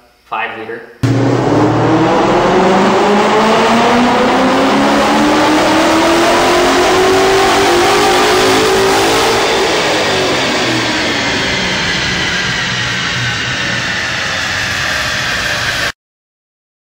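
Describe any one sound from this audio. A car engine roars loudly as it revs up, holds high, then winds down.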